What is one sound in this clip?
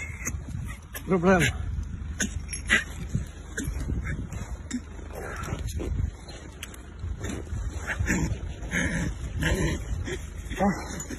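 A dog growls and whines.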